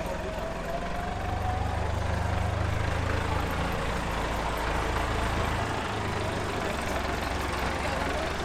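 A small tractor engine idles with a low rumble.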